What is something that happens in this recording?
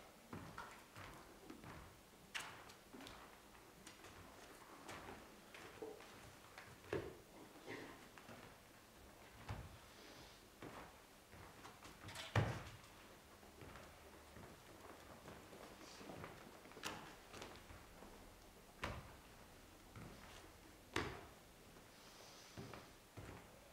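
Books thump and knock as they are handled in a large, echoing room.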